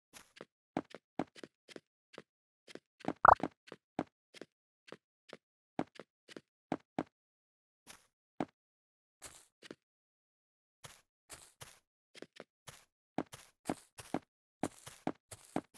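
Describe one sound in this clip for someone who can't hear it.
Blocks click into place in quick, uneven taps.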